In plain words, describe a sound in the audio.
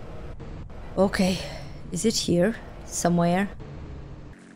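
A young woman speaks with animation into a microphone.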